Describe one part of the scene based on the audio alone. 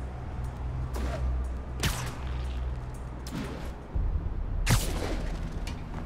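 Sharp whooshes cut through the air during fast swinging.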